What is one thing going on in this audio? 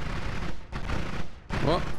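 A video game laser beam zaps with a buzzing hum.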